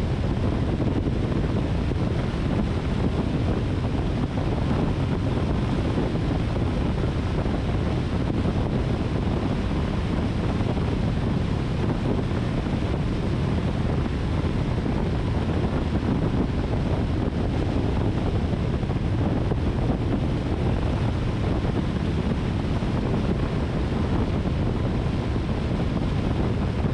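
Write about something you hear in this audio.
A car drives steadily along a paved road, with a low rumble of tyres and engine.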